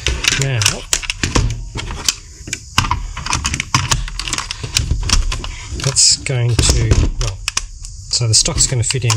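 Plastic parts click and clack as they are handled and fitted together.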